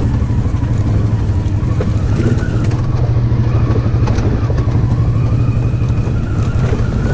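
An off-road quad bike engine rumbles steadily up close.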